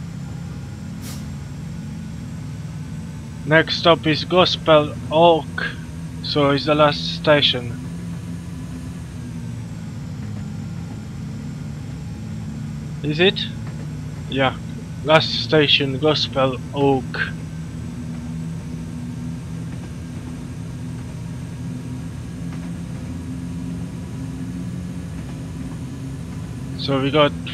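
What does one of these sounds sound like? A train engine hums low and steady as the train runs along the track.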